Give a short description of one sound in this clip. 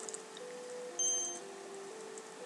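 An elevator bell chimes as its doors open.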